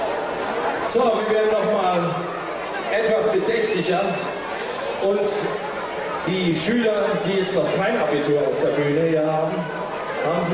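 A man speaks calmly into a microphone through loudspeakers.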